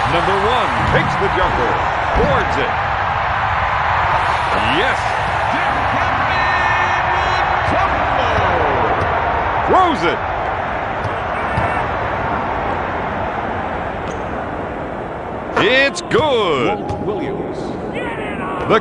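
Basketball shoes squeak sharply on a hardwood court.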